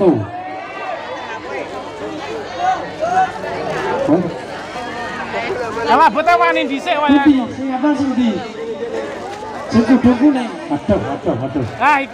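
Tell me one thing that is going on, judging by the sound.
A man chants melodically into a microphone, heard through loudspeakers.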